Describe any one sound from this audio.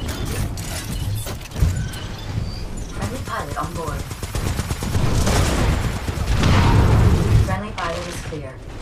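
A low mechanical rumble hums steadily.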